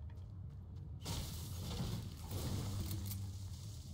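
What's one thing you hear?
A pickaxe strikes a bush with sharp swishing hits.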